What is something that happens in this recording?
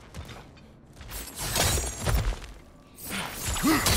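Hands scrape and grab at rock during a climb.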